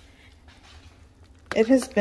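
A ladle scrapes through thick stew.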